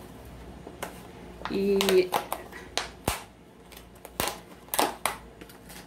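A thin plastic container crinkles and crackles in someone's hands.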